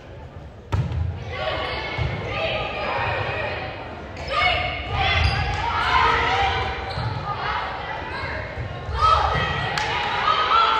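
Young women shout and call out to each other in an echoing hall.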